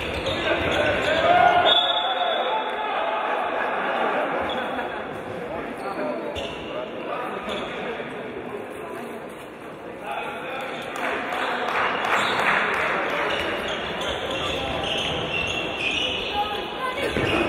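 A crowd cheers and chatters in a large echoing hall.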